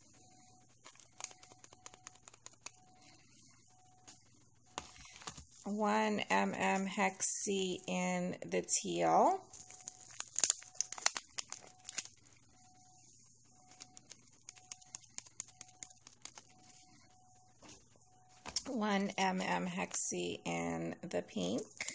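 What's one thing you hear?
Fine glitter pours and patters softly into a plastic bowl.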